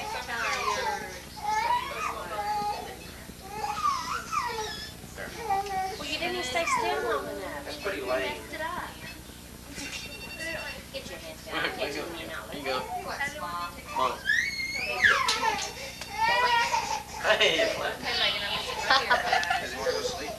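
Several women chat and laugh nearby with animation.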